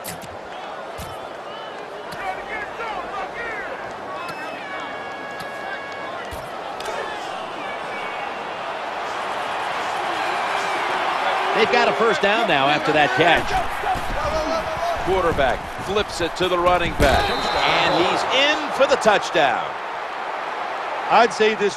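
A large crowd roars and cheers, growing louder.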